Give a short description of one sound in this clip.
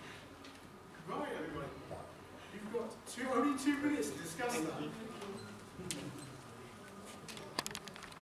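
A man speaks calmly to an audience in a room with some echo.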